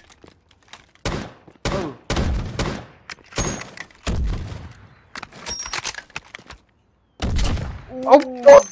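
Rifle shots ring out sharply, one after another.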